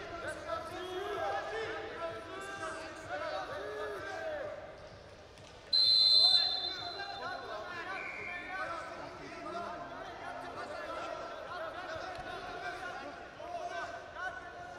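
A crowd murmurs and shouts in a large echoing arena.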